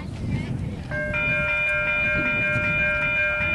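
A train horn sounds a long chord.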